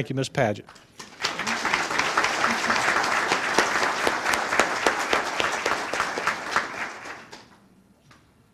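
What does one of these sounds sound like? An audience applauds loudly in a large room.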